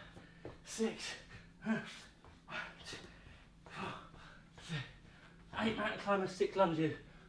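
A man speaks energetically, close by and slightly out of breath.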